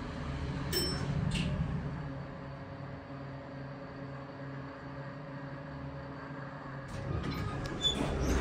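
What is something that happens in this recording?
A lift hums steadily as it moves.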